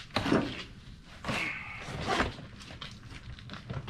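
Plastic drawers rattle as they are carried.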